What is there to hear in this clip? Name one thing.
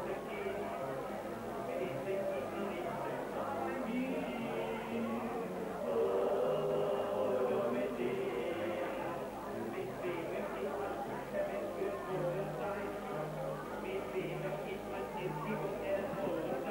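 A live band plays lively music.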